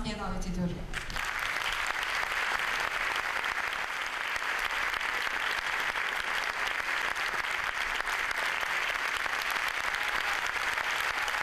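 A man claps his hands in applause.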